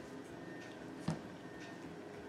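An egg taps down into a cardboard carton.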